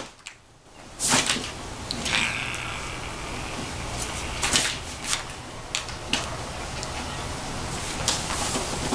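Papers rustle and crinkle as a fox tugs at them.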